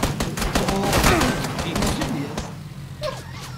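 Rapid gunshots ring out and bullets strike metal.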